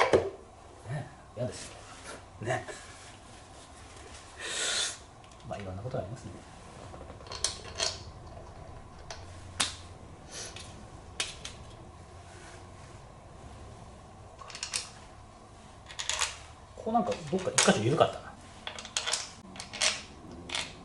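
Metal tools click and clink against an engine.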